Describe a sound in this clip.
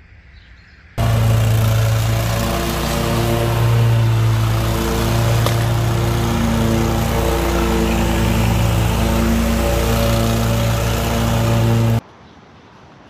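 A mower engine drones loudly and steadily close by.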